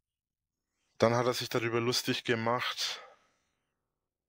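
A young man speaks loudly and briefly through a small speaker.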